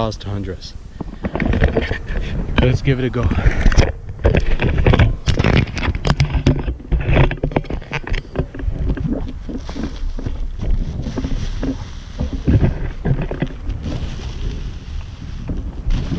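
A man talks with animation close to a microphone, outdoors in wind.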